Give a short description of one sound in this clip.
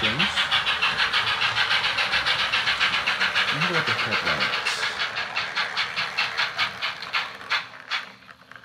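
A model steam locomotive chuffs rhythmically as it runs along the track.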